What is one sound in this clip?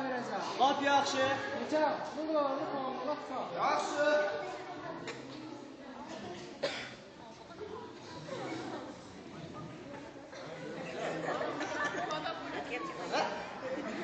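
A young man speaks loudly into a microphone in an echoing hall.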